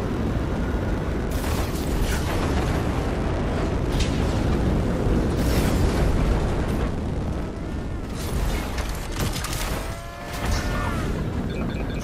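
Jet thrusters roar in a video game.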